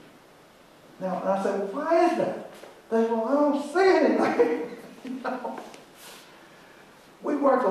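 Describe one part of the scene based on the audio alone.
An elderly man speaks with animation in a room with a slight echo.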